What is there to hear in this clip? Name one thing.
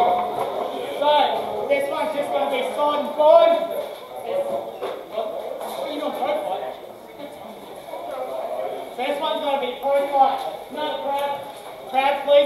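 A man talks loudly to the crowd.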